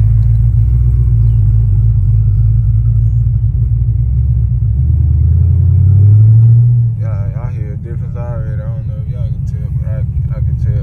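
A car engine rumbles deeply at idle.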